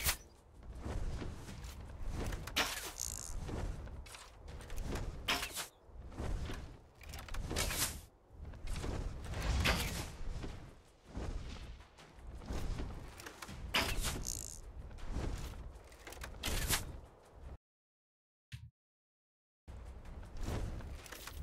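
A magic spell whooshes and crackles in bursts.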